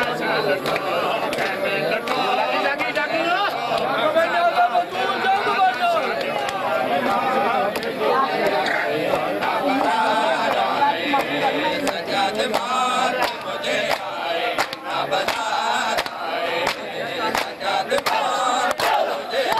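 A crowd of men chants loudly.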